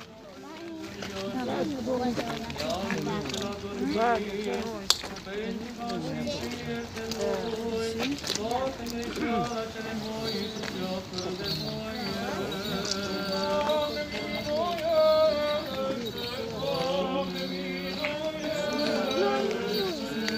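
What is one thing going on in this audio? Male priests chant outdoors.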